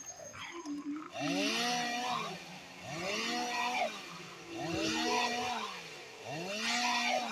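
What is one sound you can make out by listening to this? A chainsaw revs and whines in repeated swells.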